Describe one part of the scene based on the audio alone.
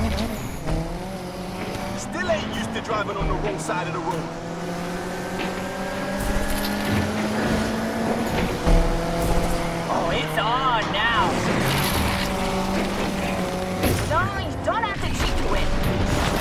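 A car engine roars steadily, rising in pitch as it speeds up.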